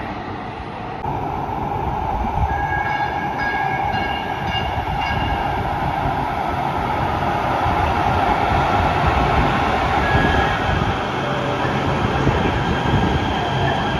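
A train rolls into an underground station with a loud, echoing rumble.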